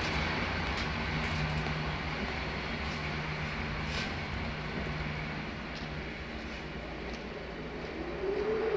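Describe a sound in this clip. An electric locomotive hums steadily as it rolls along the tracks.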